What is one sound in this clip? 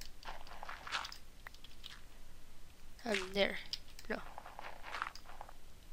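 Dirt crunches in short bursts as blocks are dug away in a game.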